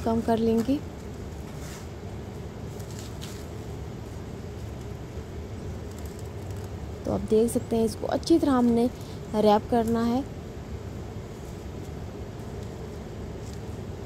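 Plastic wrap crinkles softly as hands press and fold it.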